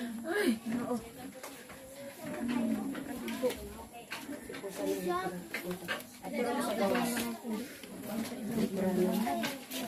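An elderly woman cries and sobs nearby.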